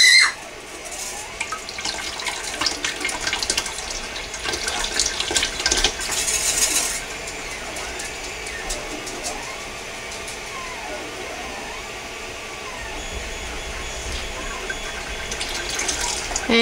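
Liquid pours into a metal pot.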